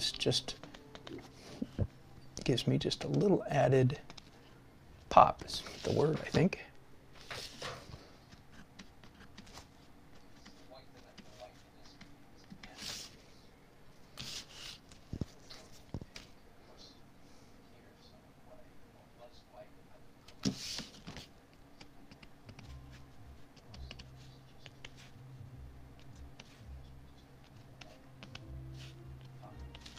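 A felt-tip marker scratches softly across paper.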